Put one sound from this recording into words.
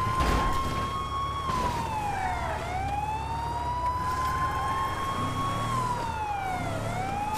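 A police siren wails steadily, rising and falling.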